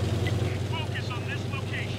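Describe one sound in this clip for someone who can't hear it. A tank engine rumbles steadily at idle.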